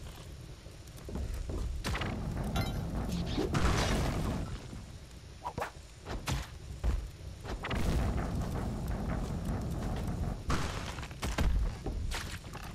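A heavy boulder rolls and rumbles along.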